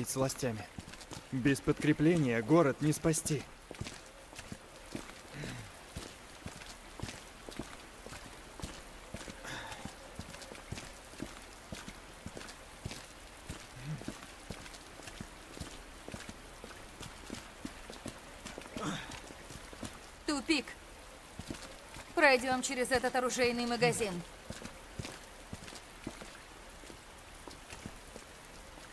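Footsteps tap steadily on wet pavement.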